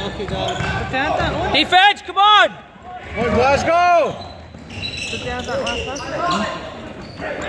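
Basketball shoes squeak sharply on a hardwood court in an echoing sports hall.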